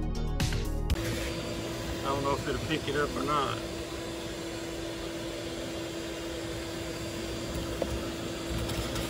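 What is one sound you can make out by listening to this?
Bees hum steadily close by.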